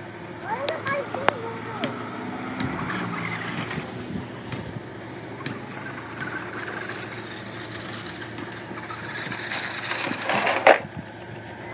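Small tyres crunch over gravel.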